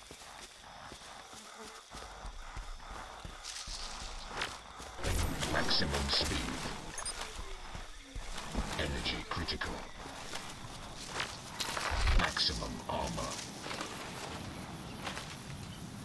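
Footsteps rustle through dense leaves and grass.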